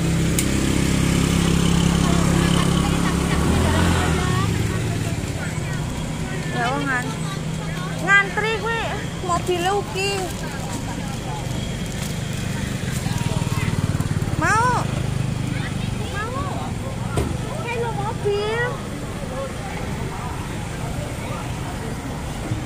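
Other scooters drive past.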